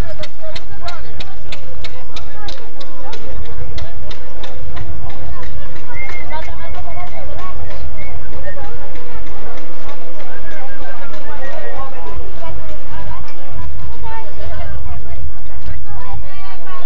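Men and women chatter and call out together close by outdoors.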